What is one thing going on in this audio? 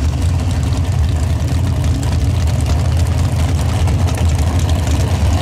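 A tractor engine roars loudly and steadily nearby.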